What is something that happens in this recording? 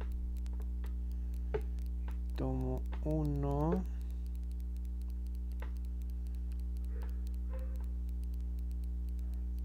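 A crochet hook clicks softly against yarn.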